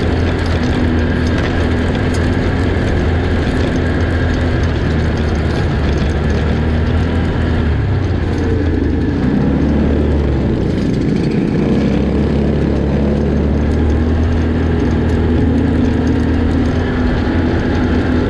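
A quad bike engine drones steadily close by as it rides.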